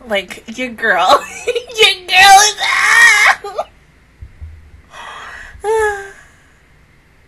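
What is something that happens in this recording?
A young woman shrieks and squeals excitedly into a close microphone.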